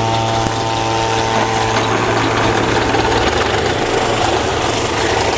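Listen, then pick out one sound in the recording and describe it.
Burning grass crackles and hisses steadily outdoors.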